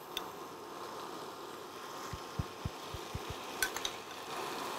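A spoon taps against a bowl.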